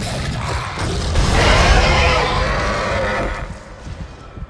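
A monster shrieks and snarls loudly.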